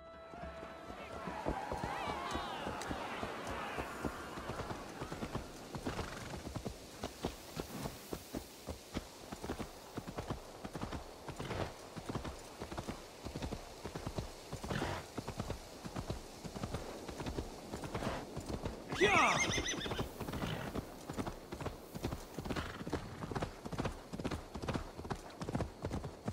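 A horse's hooves clop steadily on a path.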